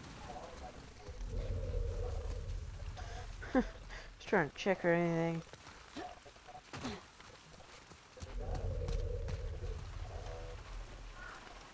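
Footsteps rustle through tall wet grass.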